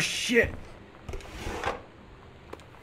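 A drawer slides open.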